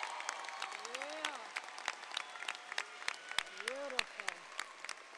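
Young men and women in a crowd cheer and whoop loudly.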